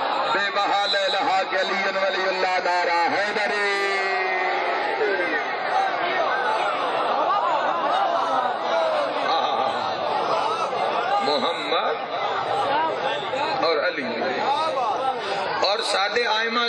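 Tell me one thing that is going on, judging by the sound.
A crowd of men chants loudly together in an echoing hall.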